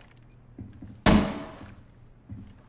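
A single gunshot cracks loudly and echoes.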